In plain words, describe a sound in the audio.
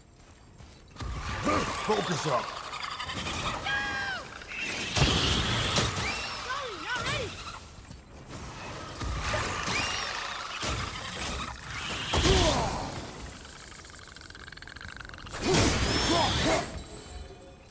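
Heavy weapon blows strike with loud thuds and crashes.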